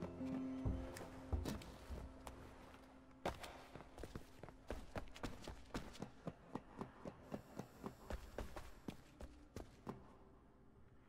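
Footsteps clatter on metal and hard floors.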